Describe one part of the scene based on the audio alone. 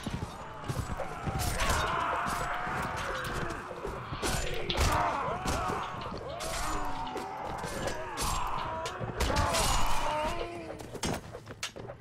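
Swords and weapons clash and strike in a fight.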